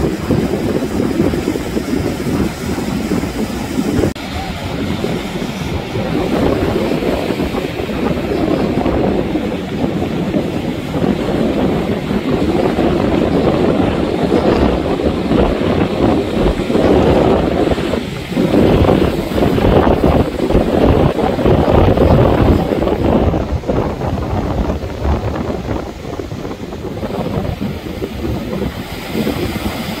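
Waves crash and roll onto the shore.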